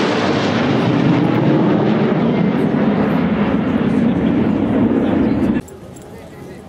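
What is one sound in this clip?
Jet aircraft roar loudly overhead.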